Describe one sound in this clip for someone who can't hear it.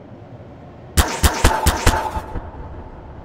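A sci-fi tool gun fires with a burst of sharp electronic zaps.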